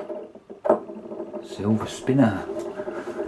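A coin clinks as it lands on a wooden table.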